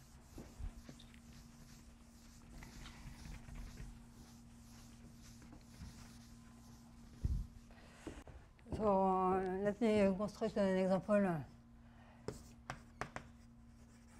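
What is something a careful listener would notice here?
A board eraser rubs across a blackboard.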